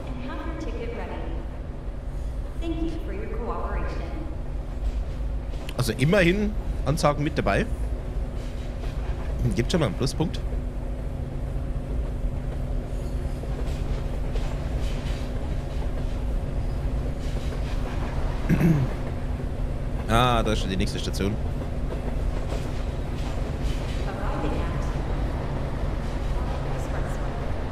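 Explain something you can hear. An underground commuter train rumbles through a tunnel, gathering speed.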